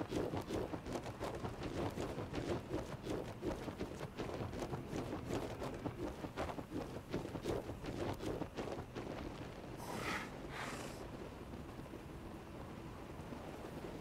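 A large winged creature's wings flap in flight.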